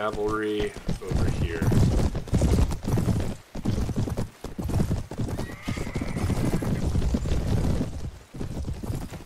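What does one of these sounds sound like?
Horses' hooves thud on grass.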